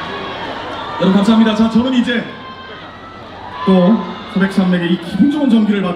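A young man speaks through a microphone over loudspeakers.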